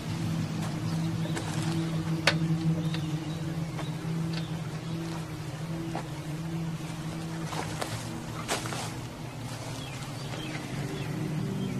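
Dry leaves crunch under a person's footsteps.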